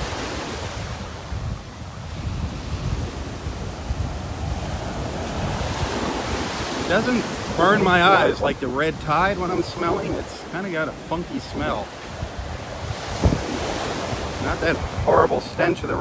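Waves wash and break steadily on a sandy shore.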